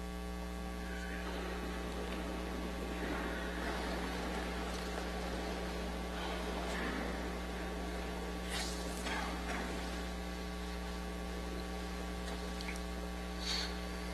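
A crowd of people murmurs and shuffles in a large echoing hall.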